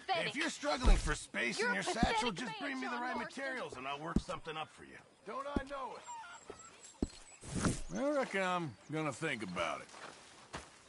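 A man speaks scornfully, close by.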